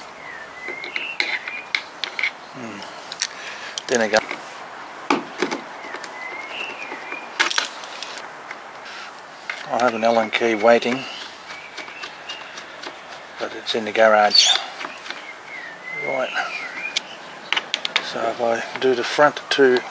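A screwdriver clicks and scrapes against a metal screw.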